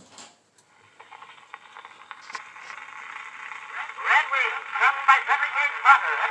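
An old phonograph plays a thin, tinny recording through its horn, growing louder.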